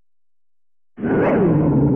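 Lively game music starts suddenly and plays loudly.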